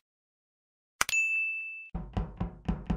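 A small bell rings with a short chime.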